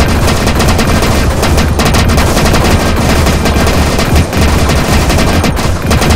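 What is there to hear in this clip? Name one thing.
Coins jingle and clink in quick bursts.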